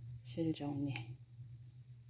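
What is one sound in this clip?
Scissors snip through yarn.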